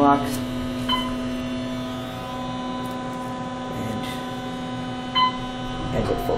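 An elevator chime dings.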